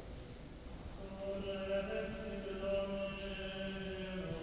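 A small group sings slowly together in a large echoing vault.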